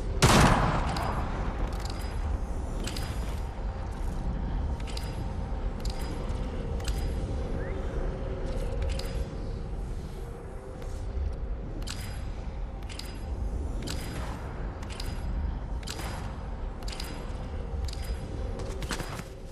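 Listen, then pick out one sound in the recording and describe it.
A pickaxe strikes a hard object again and again at a steady pace.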